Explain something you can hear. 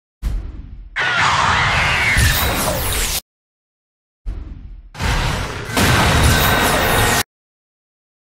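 A large creature roars loudly.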